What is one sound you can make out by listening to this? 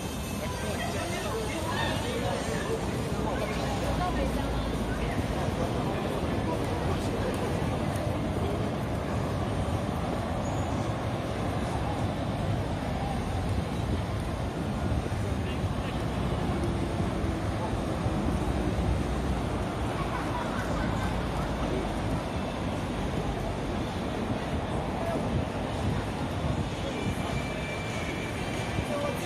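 Footsteps shuffle on pavement nearby.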